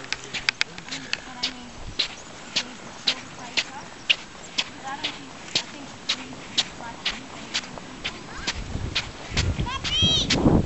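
Footsteps squeak sharply on dry sand at a steady walking pace.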